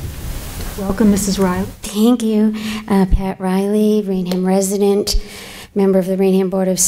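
A second woman speaks calmly through a microphone.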